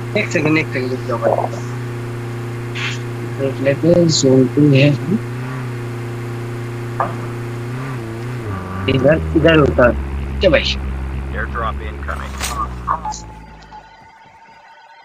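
A vehicle engine drones steadily, then cuts off.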